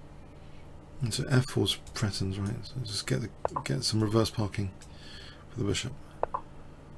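A man commentates calmly through a microphone.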